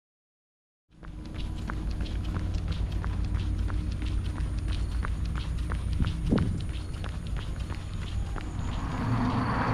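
Footsteps slap steadily on pavement at a jogging pace.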